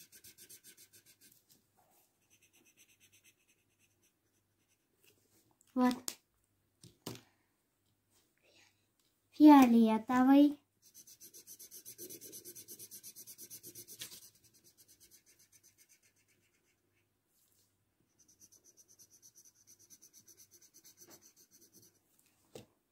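A felt-tip marker scratches rapidly back and forth on paper.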